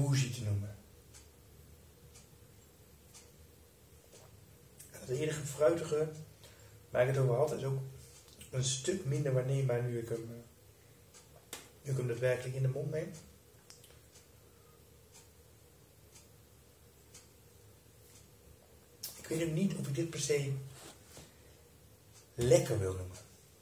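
A man talks calmly and close by, in short bursts.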